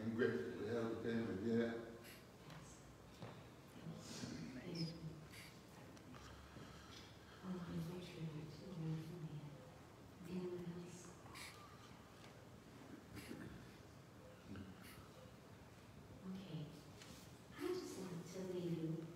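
A woman speaks calmly into a microphone in a large echoing hall.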